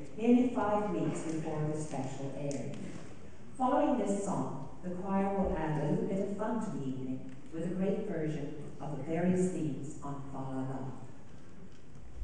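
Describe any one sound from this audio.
An elderly woman speaks calmly into a microphone in a large echoing hall.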